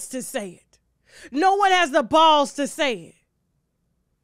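A woman speaks expressively into a close microphone.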